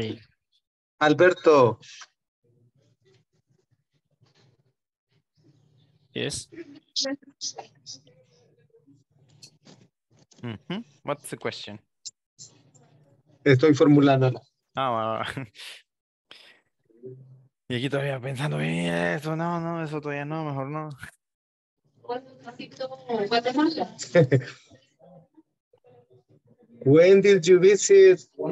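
A woman speaks with animation over an online call.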